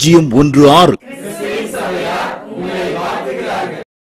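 Small children sing along to music.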